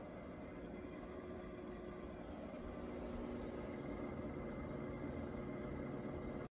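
A fire burns softly inside a stove with a low, steady rumble.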